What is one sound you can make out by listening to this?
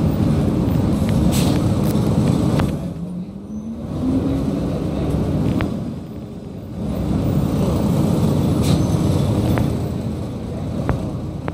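A car drives past close by with a low rumble.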